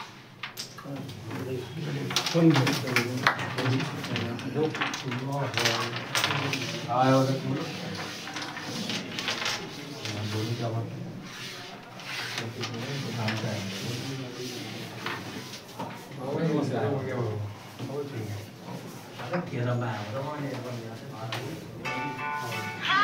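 Men talk casually close by.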